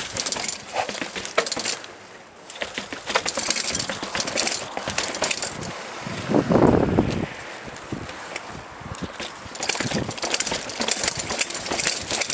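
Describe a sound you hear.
Bicycle tyres rattle over paving stones.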